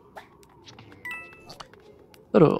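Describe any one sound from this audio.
A bright chime rings as a coin is collected.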